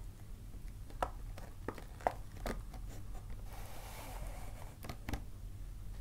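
A paper bag taps on a table as hands set it up.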